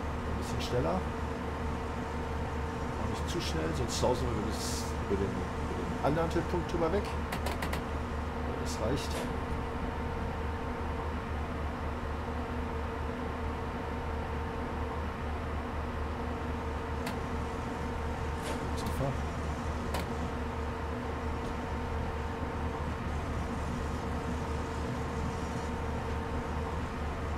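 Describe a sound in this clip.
An electric locomotive motor hums steadily as the train runs.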